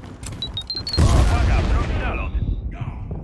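A heavy explosion booms and rumbles.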